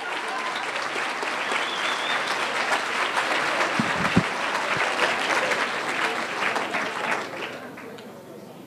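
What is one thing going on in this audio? An audience claps and cheers in a large hall, then the applause dies away.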